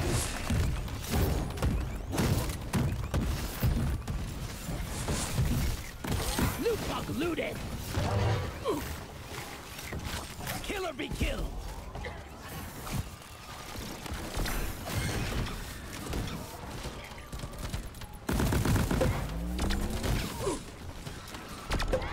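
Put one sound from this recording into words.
Rapid gunfire rattles and bursts.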